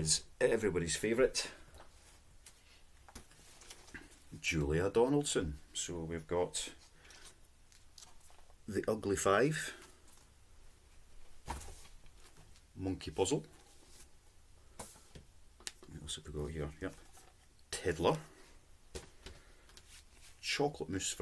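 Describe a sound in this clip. A man speaks calmly and close by, in bursts with pauses.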